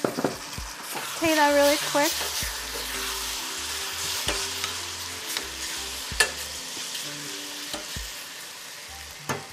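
Food sizzles in a hot pan.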